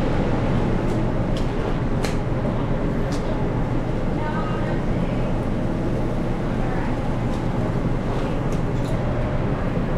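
Rubber gloves rustle and snap as they are pulled on.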